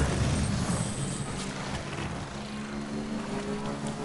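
Water splashes under motorbike wheels.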